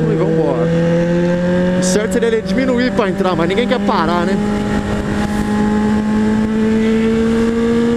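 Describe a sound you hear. Wind rushes past a fast-moving motorcycle.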